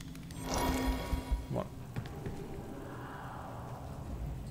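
Magic spells burst and whoosh in a game fight.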